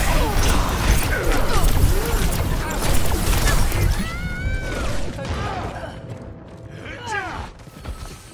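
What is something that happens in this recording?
Loud explosions burst in a game.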